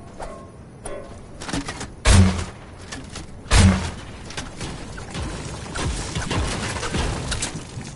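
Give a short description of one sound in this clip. A pickaxe strikes wood with sharp thuds.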